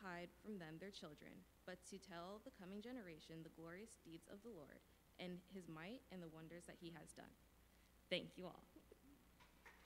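A young woman speaks calmly into a microphone in a large echoing hall.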